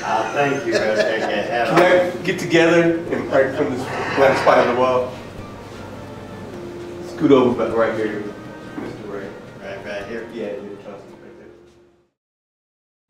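An elderly man speaks and laughs close by.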